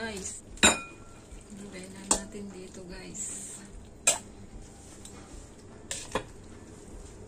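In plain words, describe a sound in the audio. A metal utensil clinks against a pot.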